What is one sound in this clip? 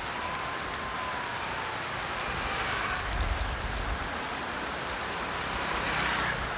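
Traffic hums on a city street.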